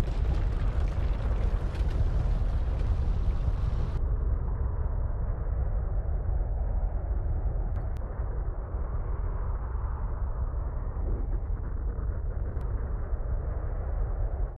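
A dragon roars.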